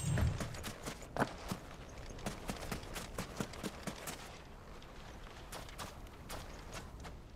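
Footsteps crunch quickly on soft sand.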